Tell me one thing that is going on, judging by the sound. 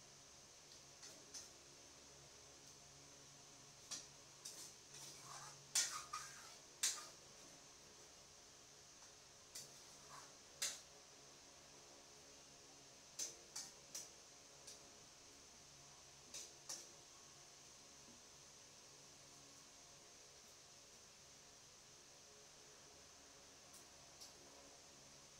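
A metal spatula scrapes and clanks against a frying pan.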